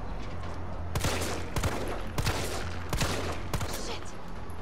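A pistol fires several shots in quick succession.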